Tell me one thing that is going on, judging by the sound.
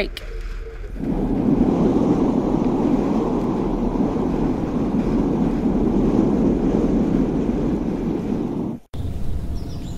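Strong wind roars and buffets against a moving truck.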